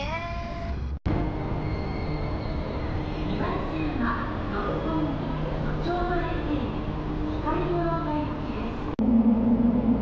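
A train rolls into a station and slows to a stop.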